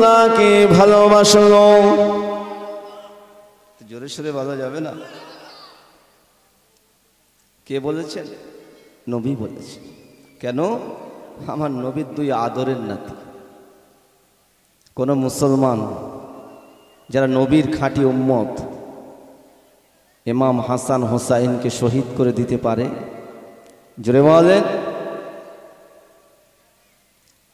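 A man preaches loudly into a microphone in bursts, heard through loudspeakers with a strong echo.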